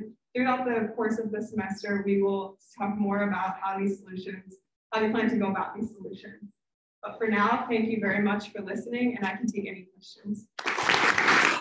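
A young woman speaks calmly through a microphone over an online call.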